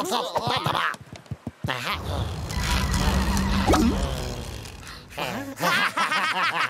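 Cartoon rabbit creatures babble and squeal in high, excited voices.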